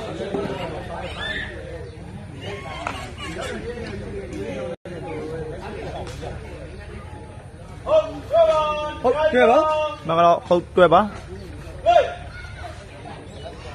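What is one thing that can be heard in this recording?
A crowd of men and boys chatters and murmurs nearby.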